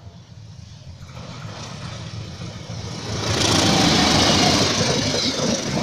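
A diesel locomotive approaches with a low rumbling engine.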